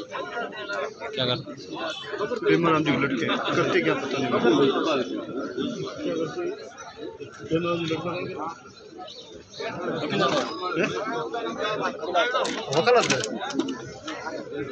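Several men talk over one another close by.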